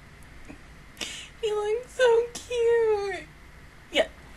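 A young woman speaks playfully into a close microphone.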